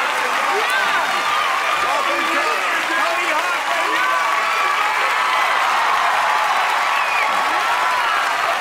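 Several voices shout and whoop with excitement.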